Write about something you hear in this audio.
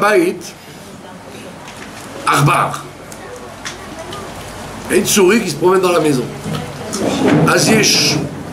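An elderly man speaks with animation close by, in bursts.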